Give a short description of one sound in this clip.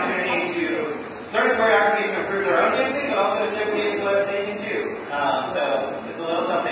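A young man speaks calmly to an audience in a room with a slight echo.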